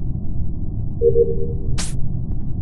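A short electronic chime sounds as a task finishes.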